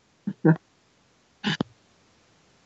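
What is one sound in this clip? A man laughs softly over an online call.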